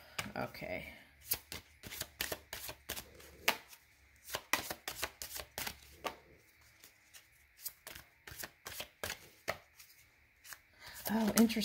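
Playing cards shuffle and snap together in quick bursts.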